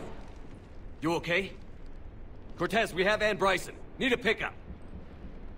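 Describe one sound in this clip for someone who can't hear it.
A young man speaks urgently up close.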